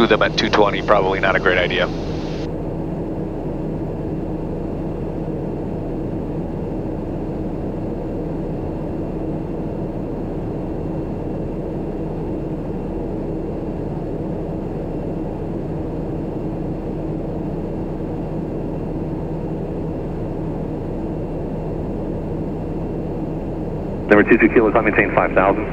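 An aircraft engine drones steadily inside a small cabin.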